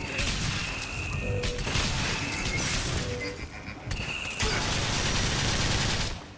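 An electric bolt crackles and buzzes.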